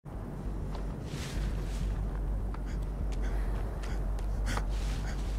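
Footsteps crunch through dry grass and brush.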